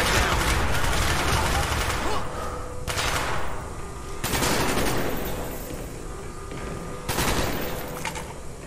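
Gunfire bursts loudly and echoes.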